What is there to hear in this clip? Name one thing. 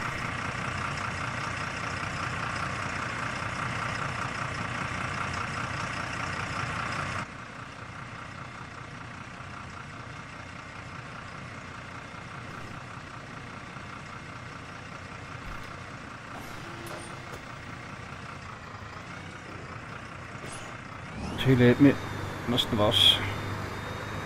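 A diesel city bus engine runs while driving.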